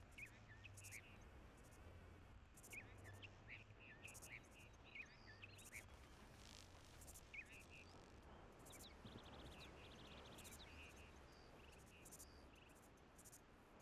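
Plants rustle as someone harvests cactus pads.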